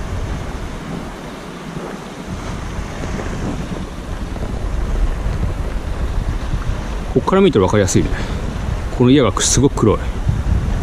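Wind buffets the microphone outdoors on open water.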